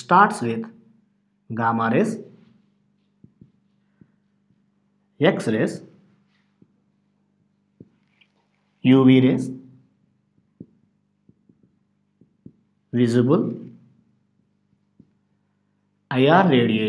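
A man speaks calmly in short phrases with long pauses.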